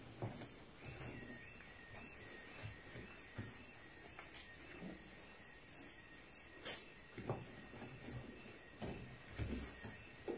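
A sponge scrubs and squeaks against a metal surface.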